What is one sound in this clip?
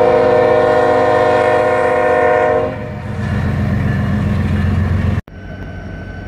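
A diesel locomotive rumbles loudly as it passes.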